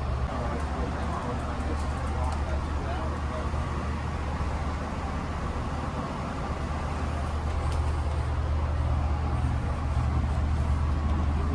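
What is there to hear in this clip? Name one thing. A train carriage hums low and steadily while standing idle.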